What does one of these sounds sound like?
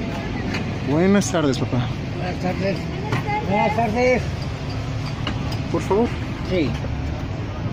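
A man talks nearby in a casual voice.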